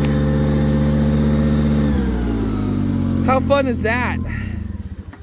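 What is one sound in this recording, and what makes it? A mower engine idles loudly, then shuts off and winds down.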